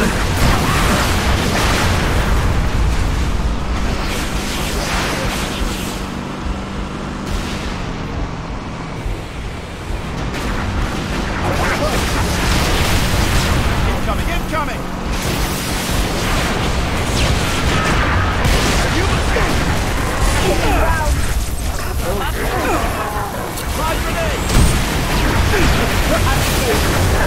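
A vehicle engine rumbles steadily while driving over rough ground.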